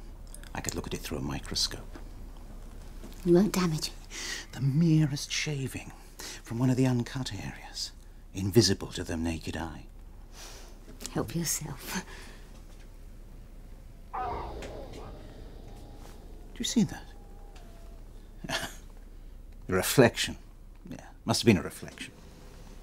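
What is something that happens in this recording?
An elderly man speaks softly and closely.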